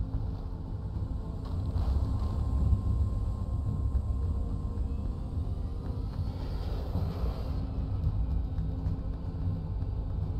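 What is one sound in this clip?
A dropship's engines rumble low and steady.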